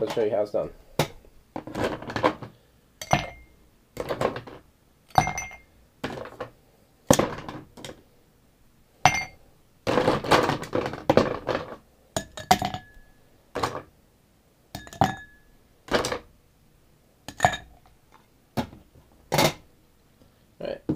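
Ice cubes clink as they drop into a glass.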